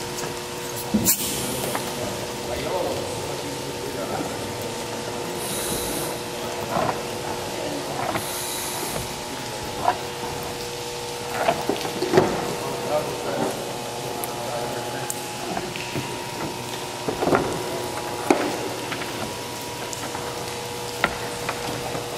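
Diving gear clanks and knocks on a wooden deck.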